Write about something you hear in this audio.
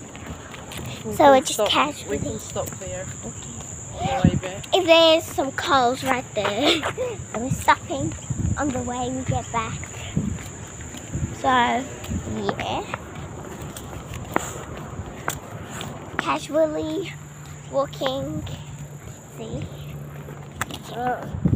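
A young girl talks and exclaims close up, with animation.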